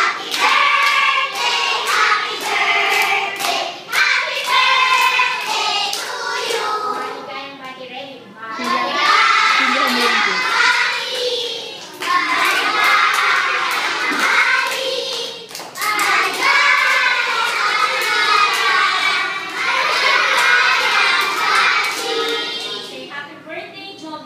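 Young children clap their hands in rhythm.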